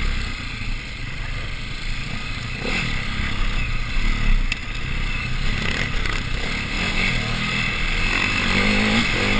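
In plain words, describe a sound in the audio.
A dirt bike engine revs and rumbles up close.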